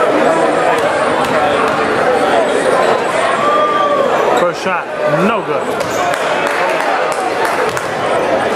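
A crowd of spectators chatters and calls out, echoing in a large hall.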